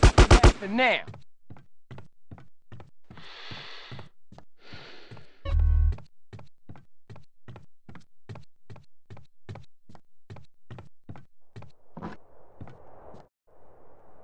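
Footsteps run quickly on a hard floor.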